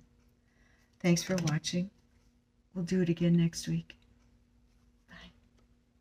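A middle-aged woman speaks calmly and closely into a microphone, in short phrases.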